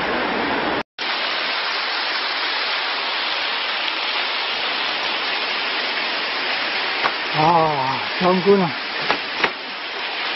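A tall waterfall pours and rushes loudly.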